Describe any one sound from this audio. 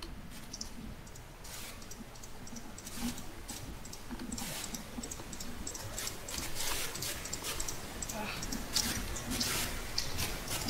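A shovel digs into dirt and stone with quick, repeated crunching scrapes.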